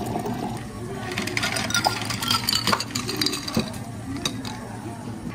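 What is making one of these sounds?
Ice cubes clatter into a glass.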